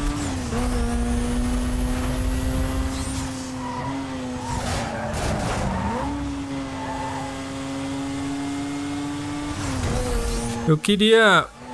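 A race car engine roars steadily at high speed.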